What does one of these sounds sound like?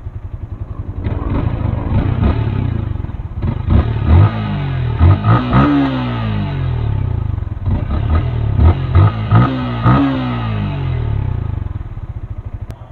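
A motorcycle engine revs up and down several times.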